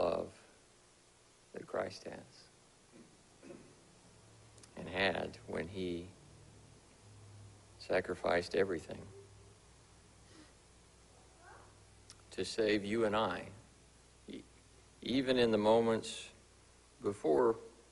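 A man speaks slowly and deliberately through a microphone, with pauses, in a room with a slight echo.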